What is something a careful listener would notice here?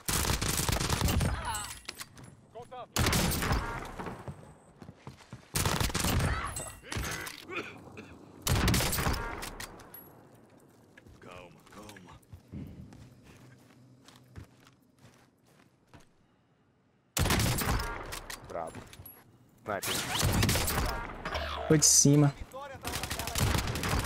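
Gunshots crack loudly in a game.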